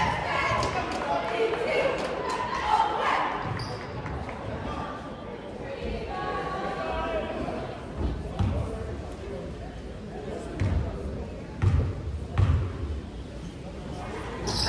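Spectators chatter and call out in a large echoing gym.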